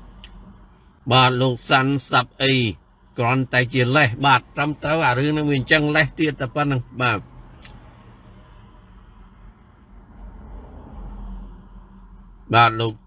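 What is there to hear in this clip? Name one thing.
A man speaks clearly into a microphone.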